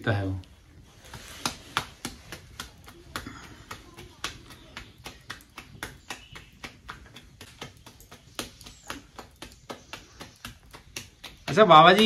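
Dough is slapped rhythmically between palms.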